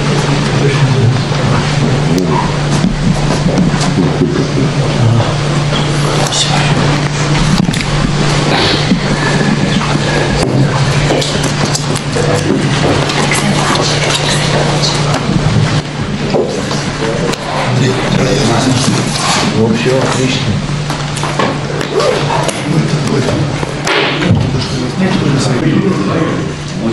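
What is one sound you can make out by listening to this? Several men murmur and talk quietly nearby in a room.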